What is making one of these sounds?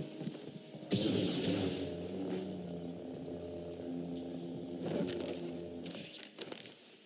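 A lightsaber ignites with a sharp hiss and then hums steadily.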